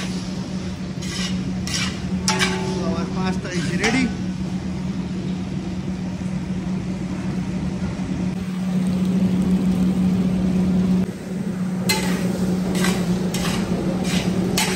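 Food sizzles steadily in a hot pan.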